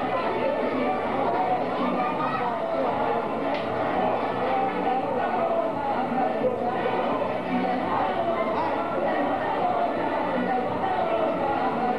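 A crowd of men and women chatters and talks over each other nearby.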